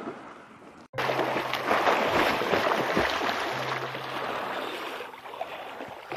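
Water splashes as a swimmer kicks.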